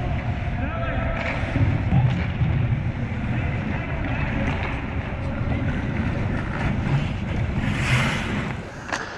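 Ice skates scrape and carve across the ice close by, in a large echoing rink.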